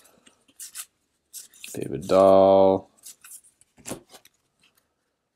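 Trading cards rustle and slide against each other in someone's hands.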